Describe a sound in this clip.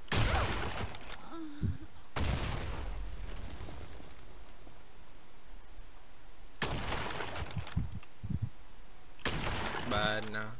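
A rifle fires loud single shots that ring out.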